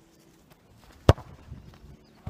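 A football is kicked hard with a sharp thud.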